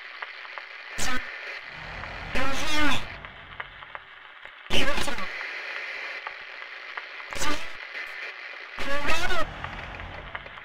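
A distorted voice speaks in broken bursts through a radio.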